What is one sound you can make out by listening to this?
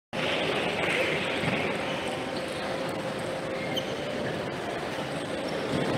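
A table tennis ball clicks back and forth on paddles and a table in an echoing hall.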